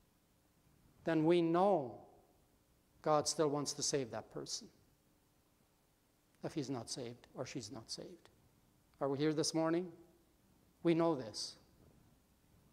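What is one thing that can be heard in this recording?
A middle-aged man speaks calmly in short phrases with pauses, heard through a microphone in a large room.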